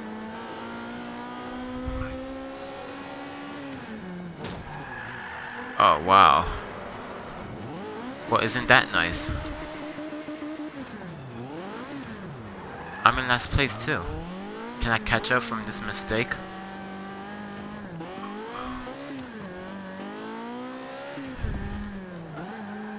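A racing car engine revs up and down as gears change.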